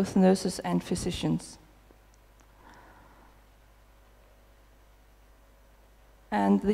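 A woman speaks calmly into a microphone, heard through loudspeakers in a large hall.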